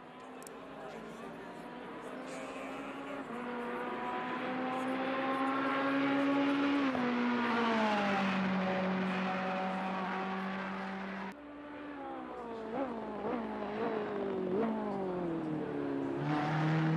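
A race car engine roars, rising through the gears and dropping in pitch as it brakes.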